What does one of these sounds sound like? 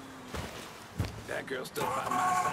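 A car engine starts and idles.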